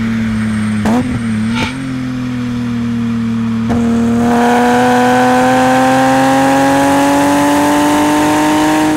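A car engine drones steadily, then revs higher as the car speeds up.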